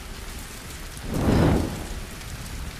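A hanging net catches fire with a loud whoosh.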